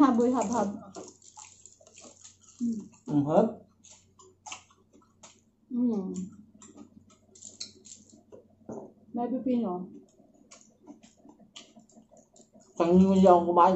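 Crunchy food crackles as it is chewed.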